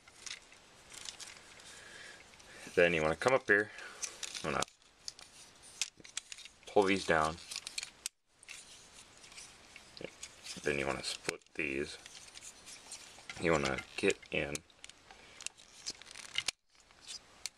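Small plastic parts click and snap as a toy is twisted by hand.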